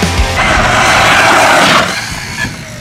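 An electric toy car whirs loudly as it races across pavement.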